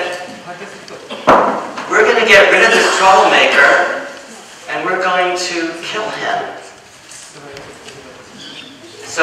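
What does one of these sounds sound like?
An older man speaks with animation into a microphone in a reverberant hall.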